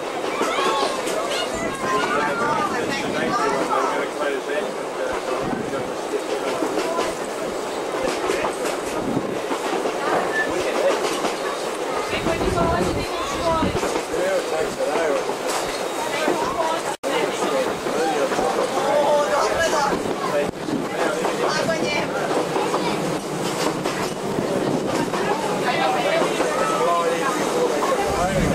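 A train rumbles and clatters along its track.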